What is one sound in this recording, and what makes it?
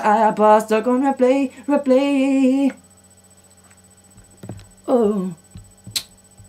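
A young man sings in a melodic voice close by.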